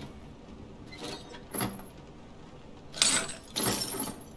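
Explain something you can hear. Bolt cutters snap through a metal chain.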